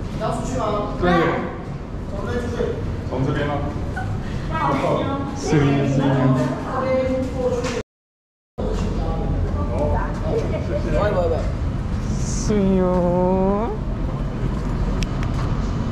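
A woman talks nearby in a conversational tone.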